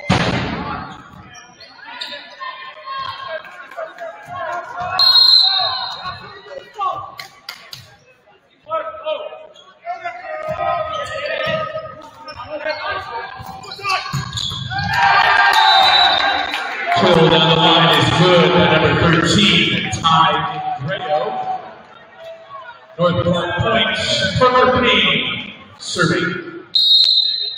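Players shout and call to each other in a large echoing gym.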